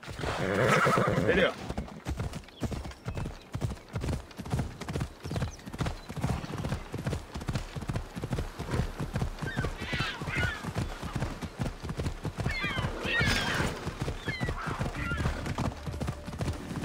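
Horse hooves thud rapidly at a gallop on the ground.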